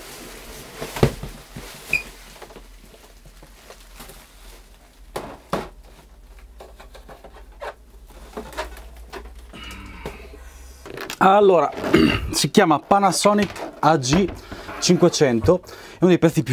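A heavy object thumps down onto a hard surface.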